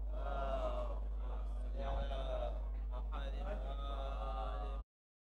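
A man sings a mournful chant through a microphone.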